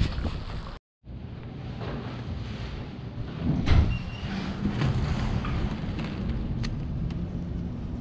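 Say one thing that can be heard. Muffled wind howls outside a window.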